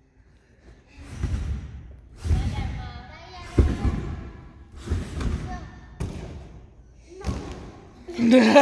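A gymnast's feet thud and bounce heavily on springy mats.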